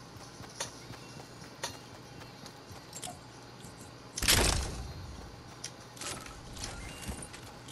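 Footsteps thud on grass.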